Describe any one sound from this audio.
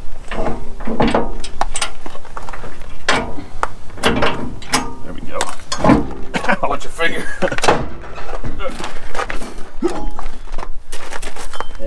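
Metal parts clink and knock close by.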